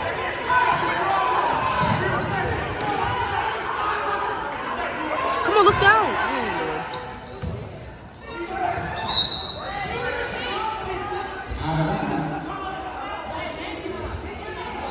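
A crowd of spectators chatters and cheers in a large echoing gym.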